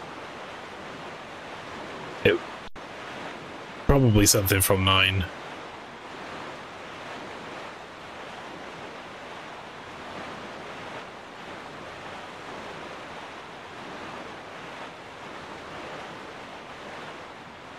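A small boat rushes across the water with a steady whoosh of waves.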